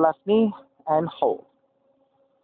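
A woman speaks a few words clearly and close by.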